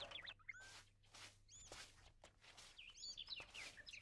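A broom sweeps and scratches across the ground.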